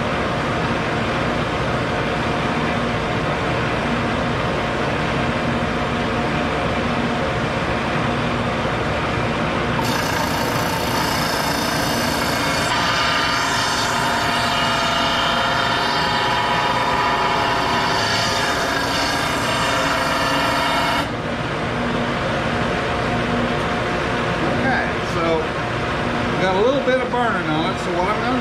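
A disc sander hums steadily.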